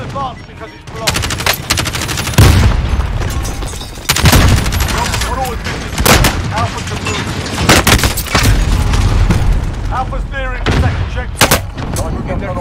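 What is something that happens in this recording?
Rifle shots fire in loud, sharp bursts.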